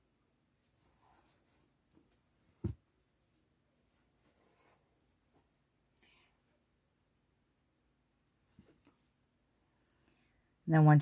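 A crochet hook softly rustles through yarn.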